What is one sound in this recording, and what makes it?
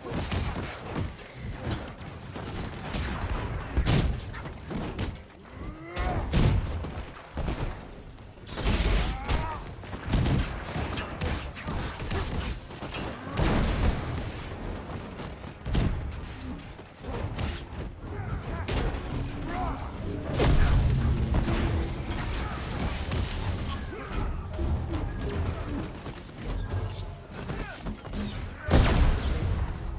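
Energy blasts crackle and explode repeatedly.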